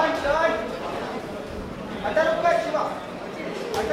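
A man shouts loudly from nearby.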